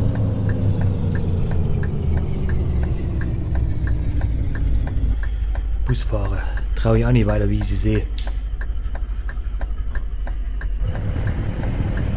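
A truck engine hums low and slowly drops in pitch as the truck eases off.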